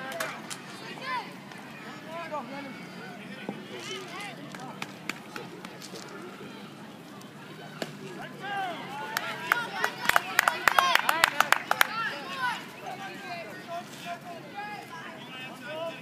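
A crowd of children and adults shouts and cheers outdoors nearby.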